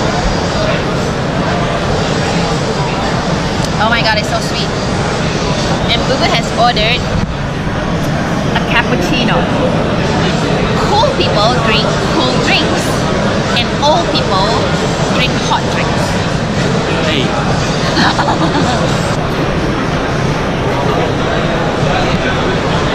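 A crowd chatters steadily in a busy, echoing room.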